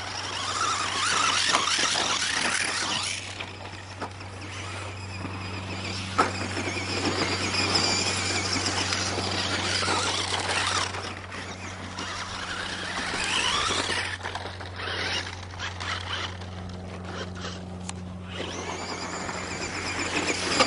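A small electric motor whines, revving up and down.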